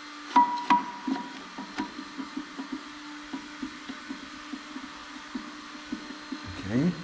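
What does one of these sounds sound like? Metal parts clink and clank sharply as a man works by hand.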